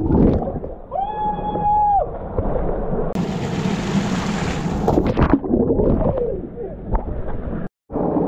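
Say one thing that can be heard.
A man splashes water with his hands.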